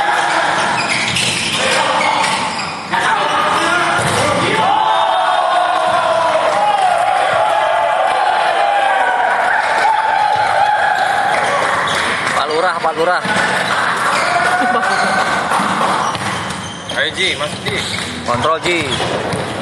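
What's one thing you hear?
A volleyball thuds sharply off hands and arms.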